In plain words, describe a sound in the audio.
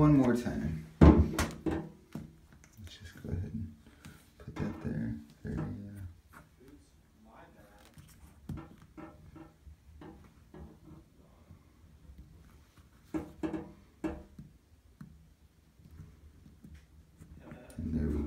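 A plastic suction cup squeaks and clicks against tile.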